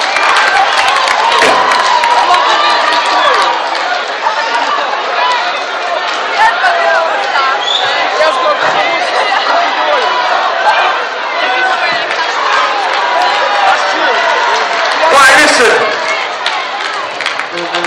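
A large crowd cheers loudly in an echoing hall.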